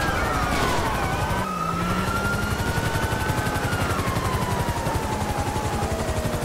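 A car engine hums as a police car drives.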